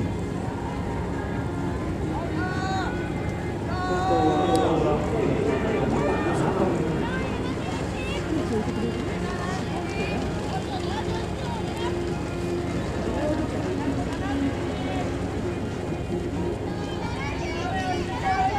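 Many runners' feet patter on a running track.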